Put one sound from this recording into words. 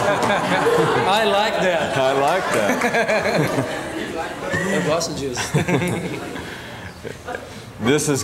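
Two men laugh.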